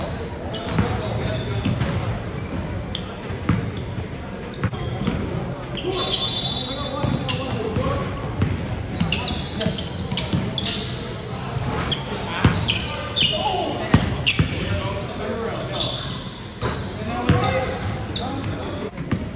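Men call out to each other across a large echoing gym.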